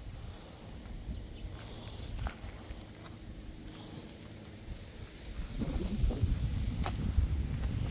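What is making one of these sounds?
Wind buffets the microphone outdoors, growing stronger toward the end.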